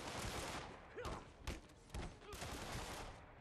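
A gunshot cracks nearby.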